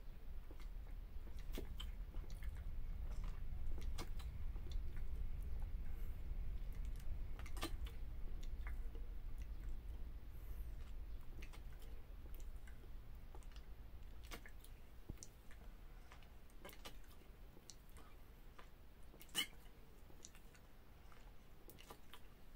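A young man gulps down a drink from a bottle, with soft swallowing clicks.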